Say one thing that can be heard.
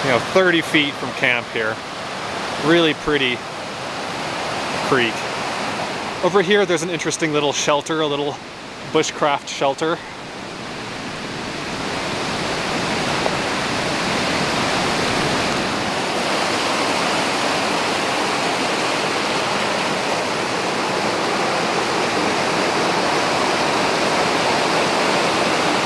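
A fast stream rushes and splashes over rocks nearby.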